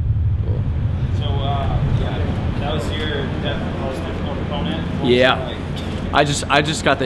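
A young man speaks breathlessly close by.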